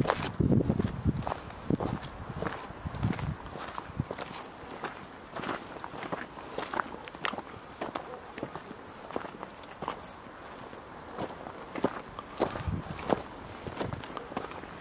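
Footsteps crunch on a dry dirt path.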